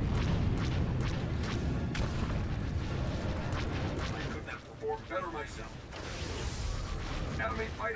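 Spaceship engines roar steadily.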